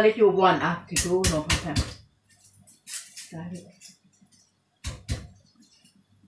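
A spoon clinks against a pot.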